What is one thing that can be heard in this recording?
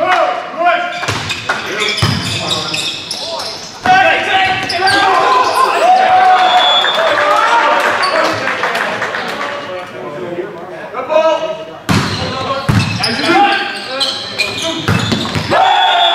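A volleyball is struck hard with sharp smacks.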